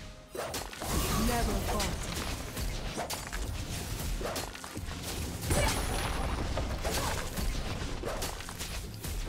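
Magic spells whoosh and crackle in a fast video game battle.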